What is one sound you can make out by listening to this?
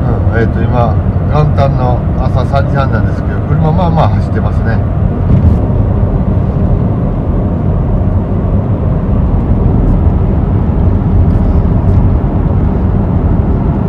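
A car drives at a steady speed, with a low rumble heard from inside.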